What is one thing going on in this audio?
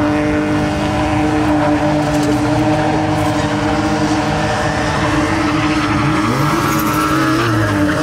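Tyres screech on the track.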